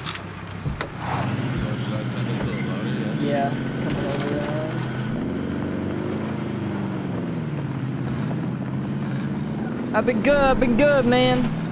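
A vehicle engine hums and revs as it drives.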